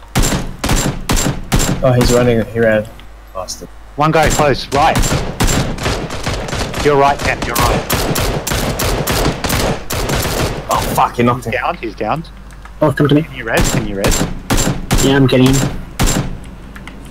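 A rifle fires rapid shots in bursts.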